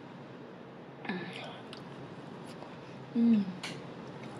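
A young woman chews food wetly, close up.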